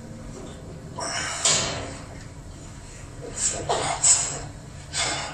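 A man breathes heavily and grunts with effort close by.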